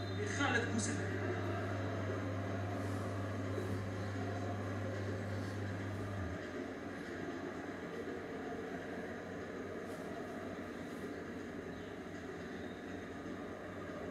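A football match broadcast plays through a television loudspeaker, with a steady murmur of stadium noise.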